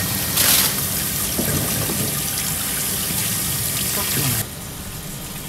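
A scaler scrapes scales off a fish.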